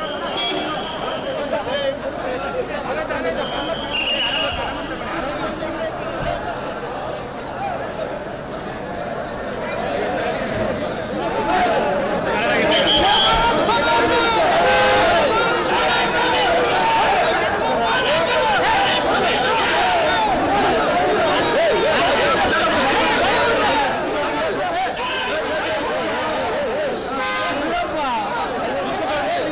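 A large crowd of men shouts and cheers with excitement.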